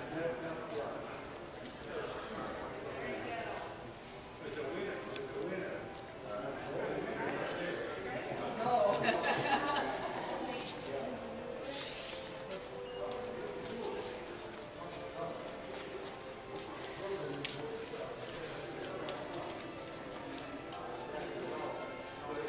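Men and women chat and murmur nearby in a large echoing hall.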